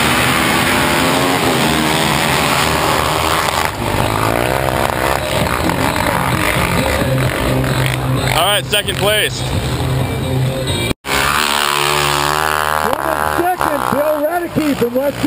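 Snow bike engines roar at full throttle as the bikes race.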